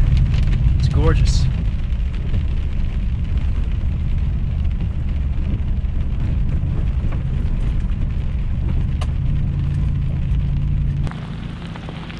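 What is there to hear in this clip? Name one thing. A vehicle drives along a dirt and gravel road, heard from inside the cab, with a low rumble.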